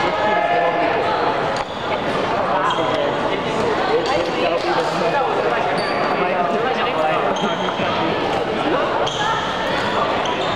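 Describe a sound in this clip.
Many young people talk and call out across a large echoing hall.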